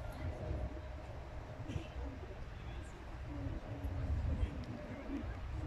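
A crowd of spectators murmurs and chatters in the distance outdoors.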